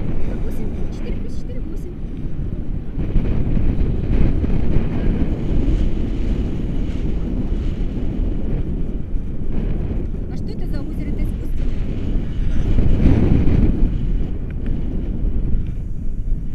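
Strong wind roars and buffets loudly throughout.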